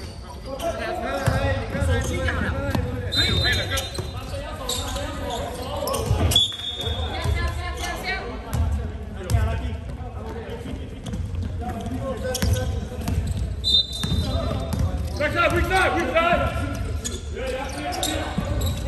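Young men shout and call out to each other across the court.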